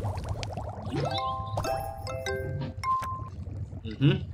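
A short, bright electronic chime jingle plays.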